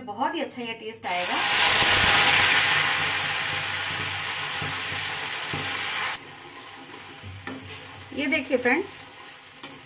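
Paste hits hot oil and sizzles loudly, then settles to a softer steady sizzle.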